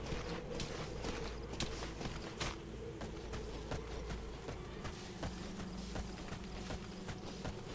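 Footsteps crunch softly on dry dirt and gravel.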